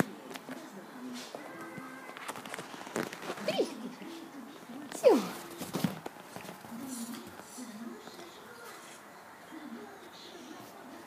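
A small dog grumbles in low, drawn-out moans.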